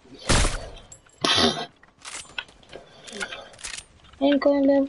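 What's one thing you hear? Loud gunshots crack in quick succession.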